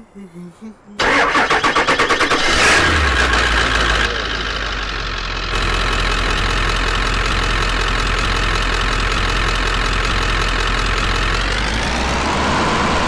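A pickup truck engine starts and rumbles loudly.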